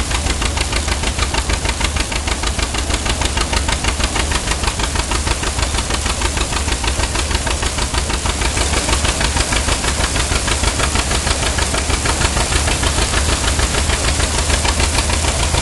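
An old threshing machine rattles and clatters steadily in a fast rhythm.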